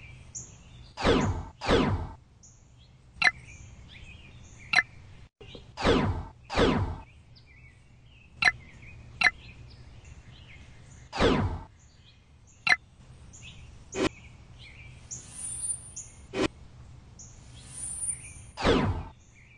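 Soft whooshes sweep down as panels open and close.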